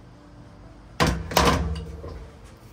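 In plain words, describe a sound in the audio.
A metal spring clatters down onto a plastic tray.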